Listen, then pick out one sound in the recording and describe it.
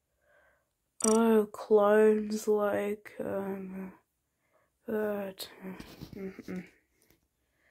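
A child talks with animation close to a microphone.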